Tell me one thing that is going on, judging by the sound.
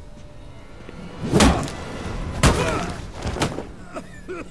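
A man strikes a body with heavy thuds.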